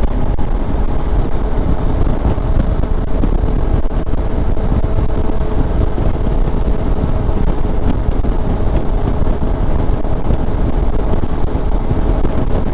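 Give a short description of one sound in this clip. A motorcycle engine hums steadily as it rides along.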